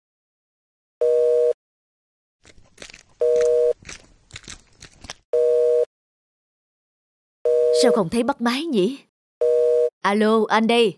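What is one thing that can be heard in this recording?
A phone ringing tone sounds in short, evenly spaced bursts through a handset.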